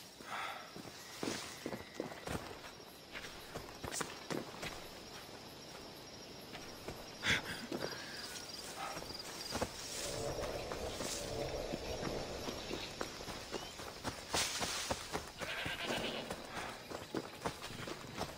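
Footsteps crunch on dry grass and rocky ground.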